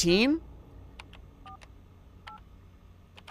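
Electronic keypad buttons beep as a code is entered.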